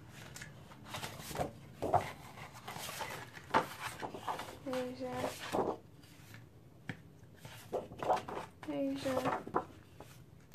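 Sheets of paper rustle and flap as hands flip through them.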